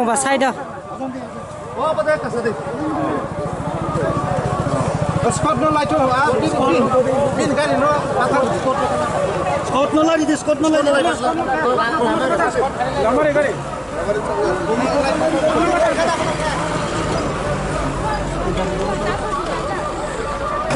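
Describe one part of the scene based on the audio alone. A crowd of men talk over one another outdoors.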